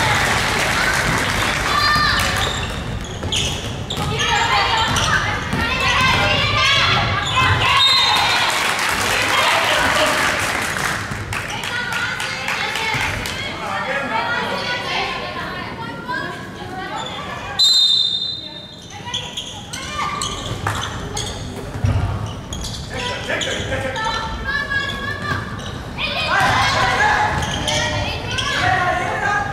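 Crowded voices shout and cheer in a large echoing hall.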